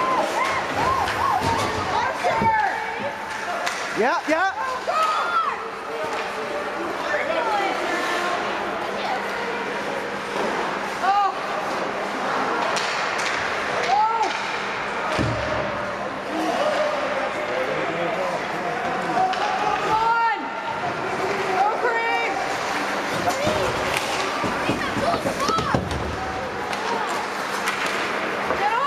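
A crowd of spectators chatters and calls out in a large echoing rink.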